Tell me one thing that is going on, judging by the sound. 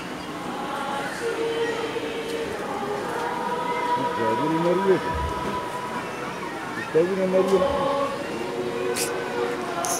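A crowd of men and women sings together.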